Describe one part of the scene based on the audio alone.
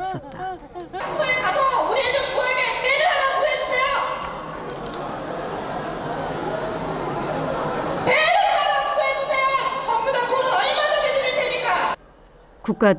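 A woman shouts pleadingly into a microphone over a loudspeaker in a large echoing hall.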